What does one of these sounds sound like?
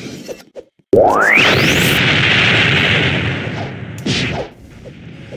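A video game energy blast bursts with a loud whoosh.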